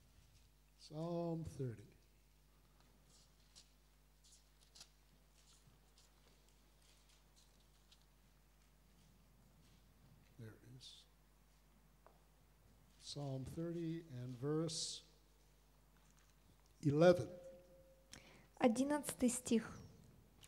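An elderly man speaks slowly into a microphone, with long pauses.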